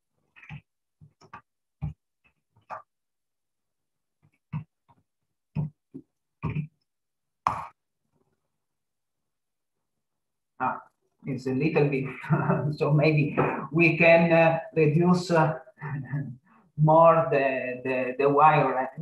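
A man speaks calmly through an online call, first in short bursts, then at length.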